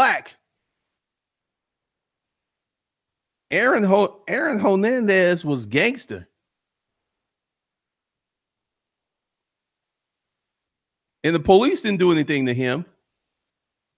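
A man speaks calmly into a close microphone, in short bursts with long pauses.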